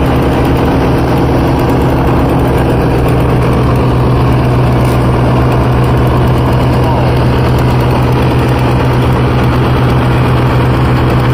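A crane's engine hums steadily nearby.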